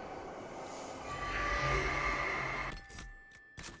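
A magical beam hums and whooshes loudly.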